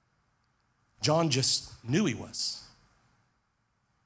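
A man speaks briefly with emphasis into a microphone.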